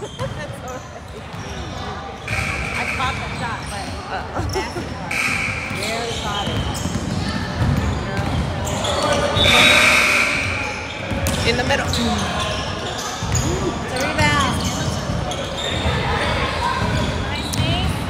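Children shout and call out across a large echoing gym.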